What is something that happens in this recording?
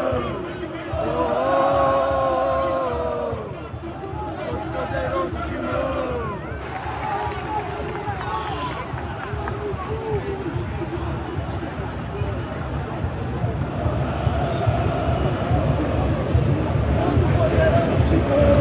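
A dense crowd roars and murmurs all around in a huge open arena.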